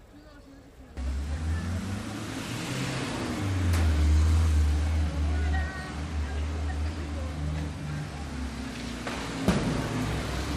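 A vehicle engine rumbles loudly close by.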